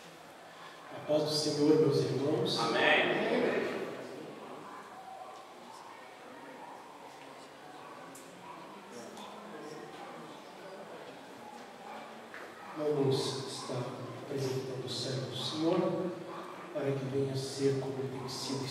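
A man speaks into a microphone, his voice carried through loudspeakers in an echoing room.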